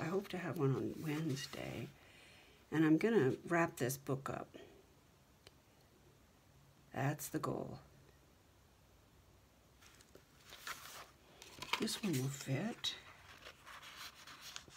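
Stiff paper pages rustle and flap as they are turned.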